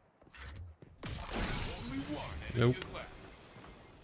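Energy weapons fire and blasts crackle loudly.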